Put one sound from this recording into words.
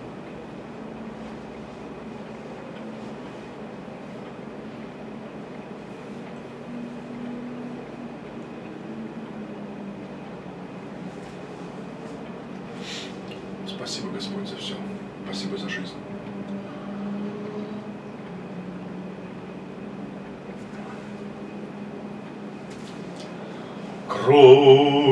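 A man chants a prayer slowly in a deep, steady voice.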